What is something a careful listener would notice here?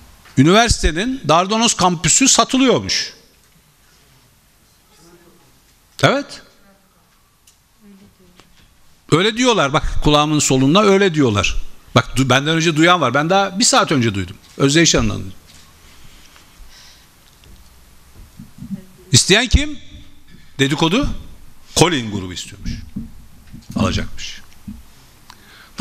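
An elderly man speaks forcefully into a microphone, with pauses.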